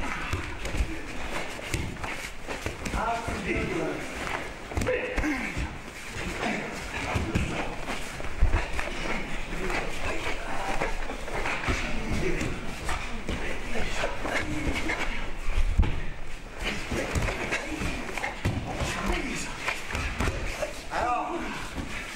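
Several men call out and talk in a large echoing hall.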